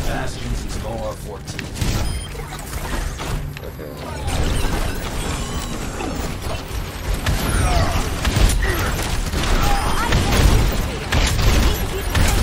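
Heavy game weapons fire in rapid bursts.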